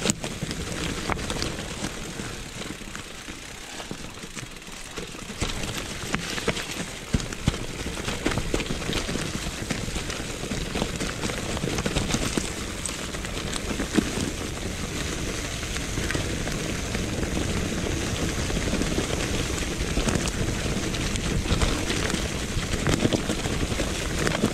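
A bicycle frame rattles and knocks over bumps.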